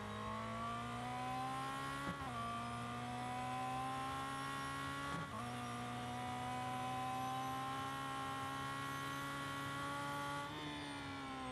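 A racing car engine roars and climbs in pitch as it shifts up through the gears.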